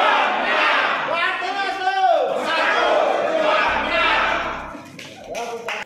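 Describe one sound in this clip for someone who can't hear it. A crowd chants loudly in unison.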